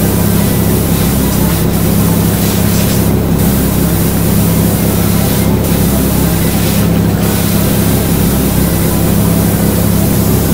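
A pressure washer sprays a steady, hissing jet of water.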